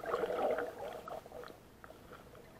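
Water splashes and bubbles at the surface.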